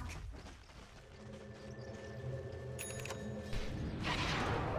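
A magical spell hums steadily.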